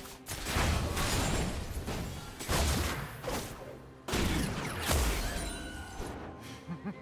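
Game spell effects whoosh and crash in loud bursts.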